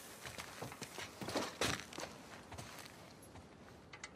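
Footsteps thud on a wooden step.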